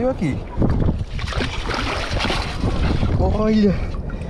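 A scoop digs into sand and water with a rushing splash.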